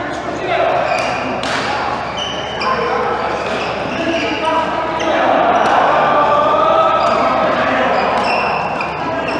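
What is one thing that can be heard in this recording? Badminton rackets strike a shuttlecock with sharp pops in an echoing hall.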